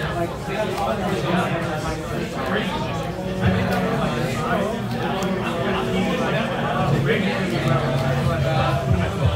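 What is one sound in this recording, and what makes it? Playing cards are placed on a cloth mat with soft taps.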